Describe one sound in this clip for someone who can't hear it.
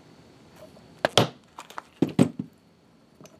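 A poly mallet strikes in sharp, ringing blows.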